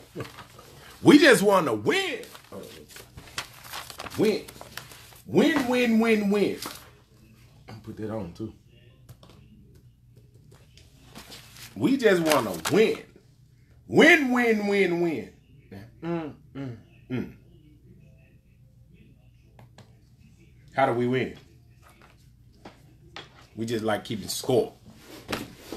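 A man talks with animation close to a phone's microphone, in bursts with pauses.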